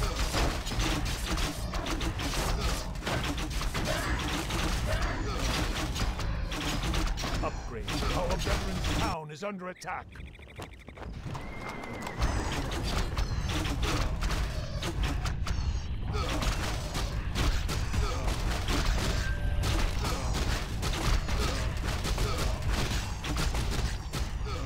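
Game battle sounds of weapons clashing and spells hitting play in quick succession.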